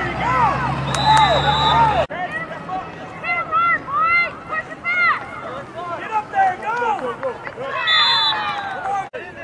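A referee's whistle blows shrilly.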